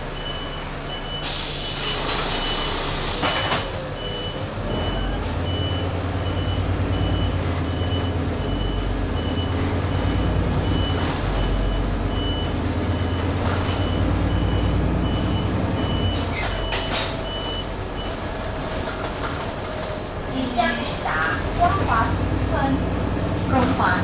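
A bus engine rumbles steadily from inside the cabin.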